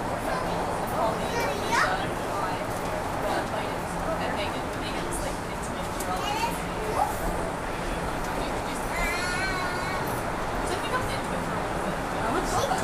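A subway train rumbles steadily along the tracks.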